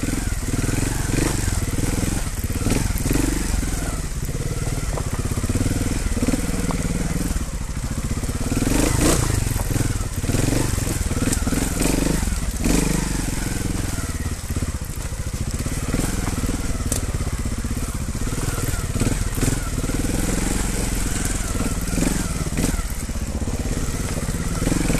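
A dirt bike engine revs and chugs up close.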